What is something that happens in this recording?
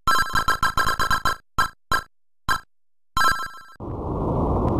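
Electronic game beeps chirp in quick bursts.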